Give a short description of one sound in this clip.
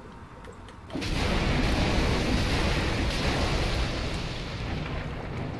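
Flames roar in a sudden burst.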